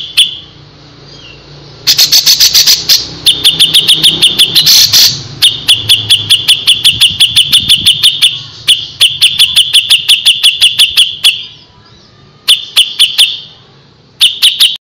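A bird sings rapid, sharp, repeated chirps in bursts.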